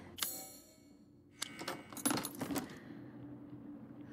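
A lock clicks open.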